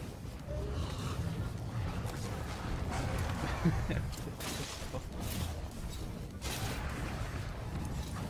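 A large winged monster growls and roars.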